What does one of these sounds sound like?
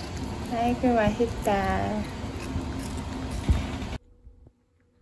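A cat chews a treat.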